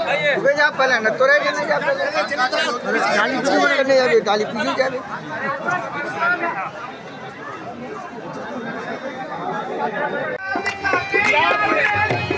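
Men talk and call out in a crowd outdoors.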